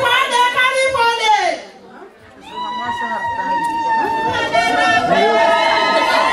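A woman sings into a microphone, heard through a loudspeaker.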